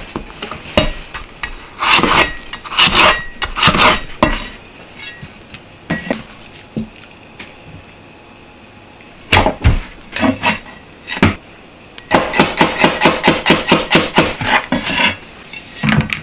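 A heavy knife chops on a wooden board with quick knocks.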